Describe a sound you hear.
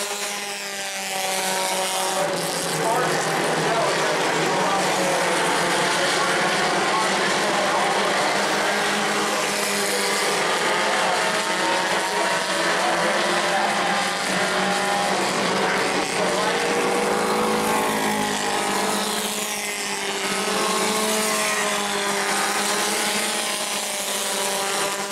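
Racing car engines roar loudly as the cars speed around a track.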